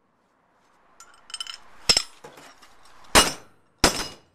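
A metal plate scrapes against a steel block.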